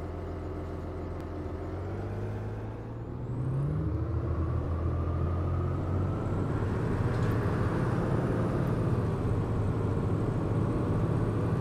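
A diesel articulated city bus engine hums and accelerates.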